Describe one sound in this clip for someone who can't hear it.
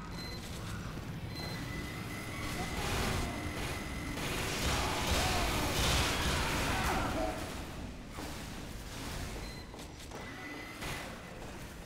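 A heavy rotary gun fires in loud, rapid bursts.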